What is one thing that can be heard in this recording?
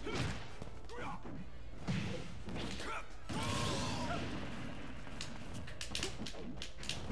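Punches and hits land with sharp smacks.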